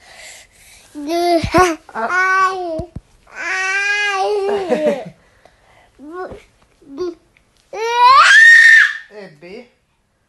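A young woman laughs and talks playfully up close.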